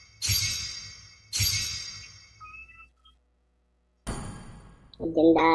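Bright game chimes ring out and slowly fade.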